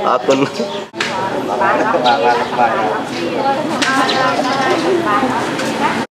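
A woman speaks into a microphone with animation.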